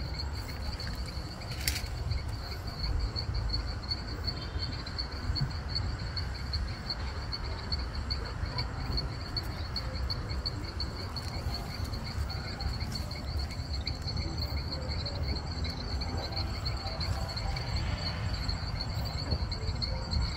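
Dogs growl and snarl as they wrestle playfully.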